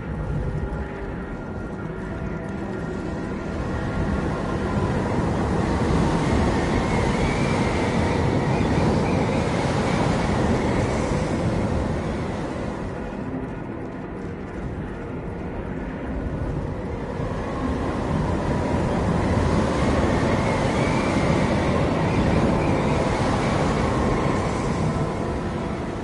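Strong wind howls and roars, swelling and easing in waves.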